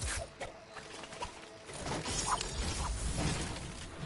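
A chest opens with a bright chiming sound.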